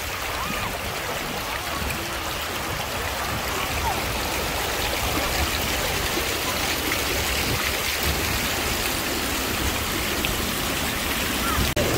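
Small fountain jets splash and gurgle steadily into a pool.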